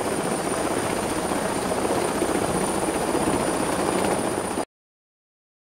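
A gyroplane engine drones loudly nearby.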